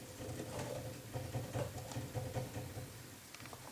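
A small exercise wheel spins with a low, rattling rumble.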